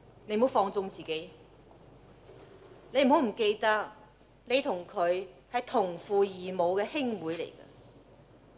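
A woman speaks firmly and clearly nearby.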